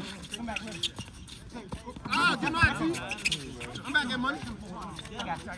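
A basketball bounces on pavement.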